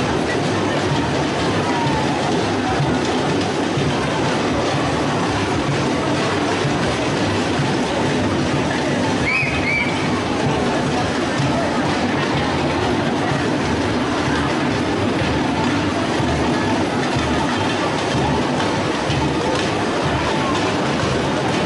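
A large crowd of marchers murmurs and chatters outdoors.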